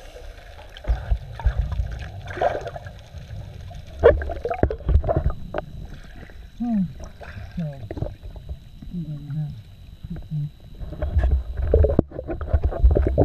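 An arm splashes and strokes through water close by.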